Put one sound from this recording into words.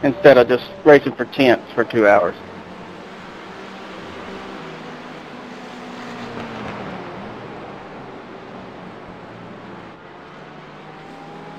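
Racing car engines drone steadily as the cars speed past.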